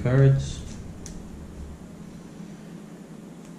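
Playing cards shuffle and slide on a table.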